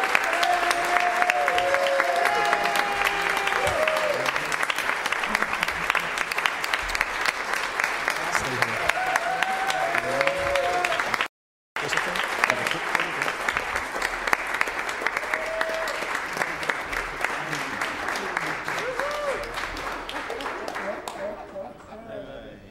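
Women in the crowd cheer and whoop loudly.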